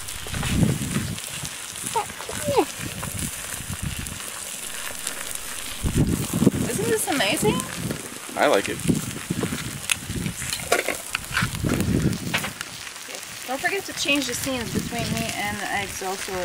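Eggs sizzle steadily on a hot griddle.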